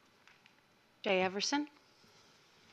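A woman speaks briefly into a microphone.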